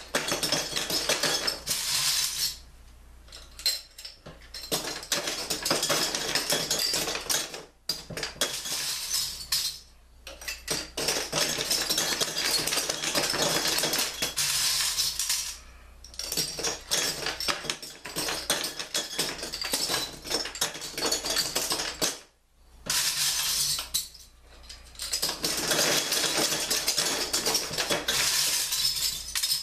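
Metal bottle caps rattle and clatter against glass inside a frame.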